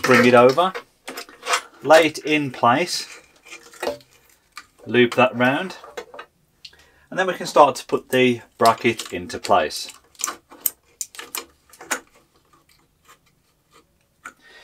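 A plastic cable chain clicks and rattles as it is handled.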